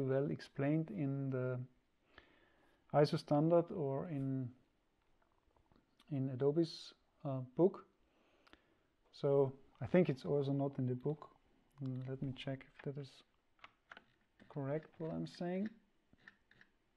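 A young man talks calmly into a close microphone, in bursts with pauses.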